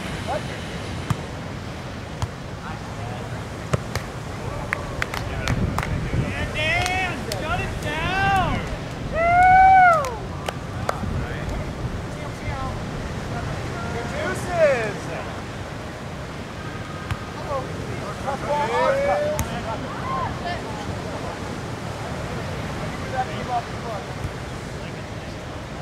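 Waves wash steadily onto a beach.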